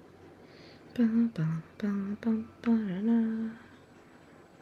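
A woman speaks with animation into a microphone, close up.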